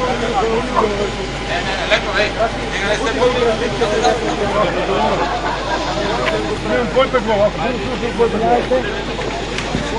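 A man talks calmly nearby.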